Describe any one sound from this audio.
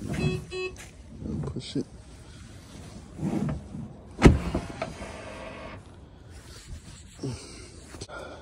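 A hand pats and rubs a car's body.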